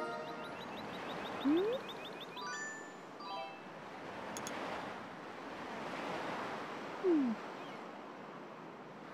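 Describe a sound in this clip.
A soft breeze blows steadily outdoors.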